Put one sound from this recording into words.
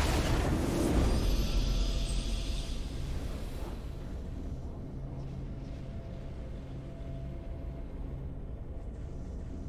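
Triumphant music plays.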